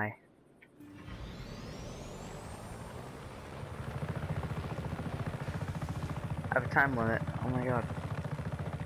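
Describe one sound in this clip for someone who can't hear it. A helicopter's rotor thumps steadily and grows louder.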